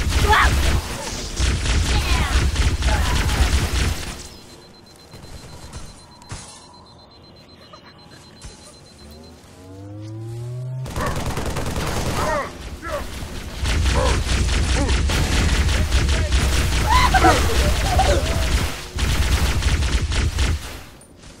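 Energy weapons fire in rapid crackling bursts.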